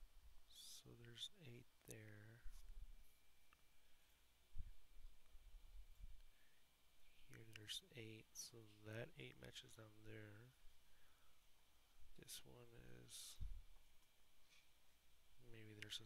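A young man speaks calmly through a headset microphone.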